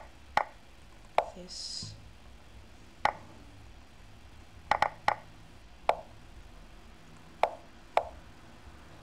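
Sharp wooden clicks of chess pieces being set down sound now and then.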